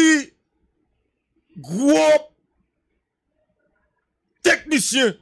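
A man speaks emphatically into a microphone, in short bursts.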